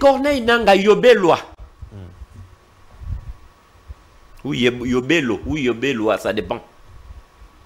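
A man speaks forcefully into a microphone, in short animated bursts.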